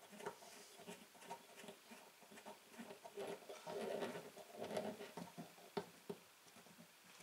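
Small metal parts click and scrape as a clamp is tightened by hand.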